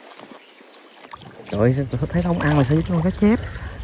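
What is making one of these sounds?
A small lump of bait plops into calm water.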